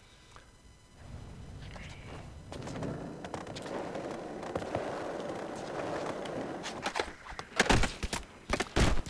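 Skateboard wheels roll over a smooth concrete floor.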